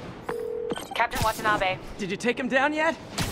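A young woman talks with animation over a phone call.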